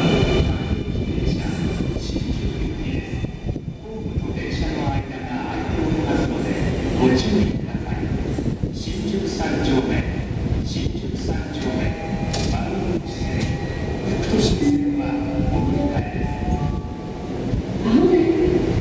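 A subway train stands at the platform with its equipment humming.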